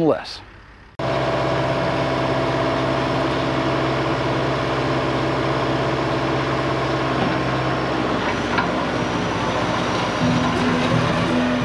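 A tractor's diesel engine chugs steadily nearby, then shifts pitch as the tractor pulls away.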